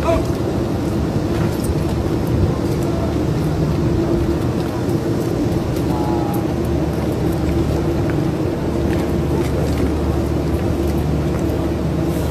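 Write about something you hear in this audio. A forklift engine rumbles steadily nearby.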